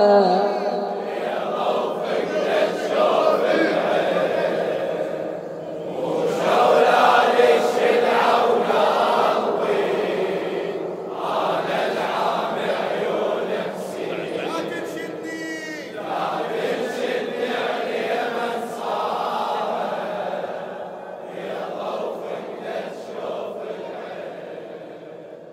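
A crowd of men beats their chests in a steady rhythm.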